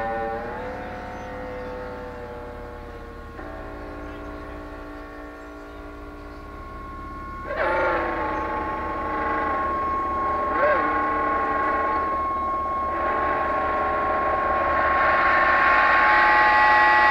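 An electric guitar plays long, held notes through a loud amplifier.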